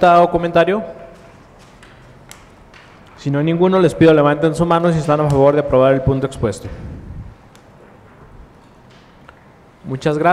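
A man speaks calmly through a microphone in a room with slight echo.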